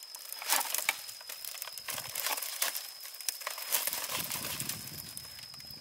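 Dry bamboo creaks under a person's weight.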